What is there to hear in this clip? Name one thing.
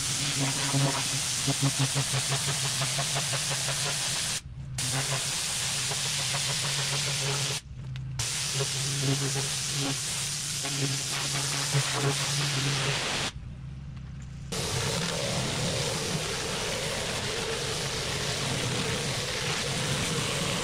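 A jet of water hisses and sprays against concrete.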